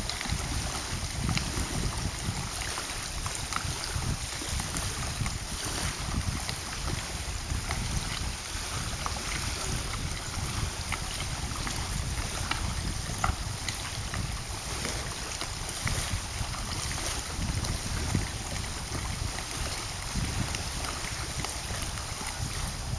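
Small waves lap against the shore.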